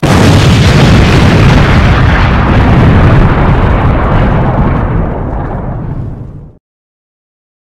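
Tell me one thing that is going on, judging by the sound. A huge explosion roars and rumbles, slowly fading.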